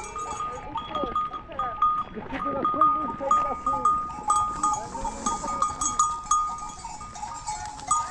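Sheep lick and crunch salt on a rock close by.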